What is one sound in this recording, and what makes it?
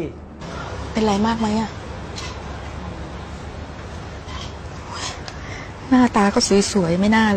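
A middle-aged woman speaks close by in a sorrowful, tearful voice.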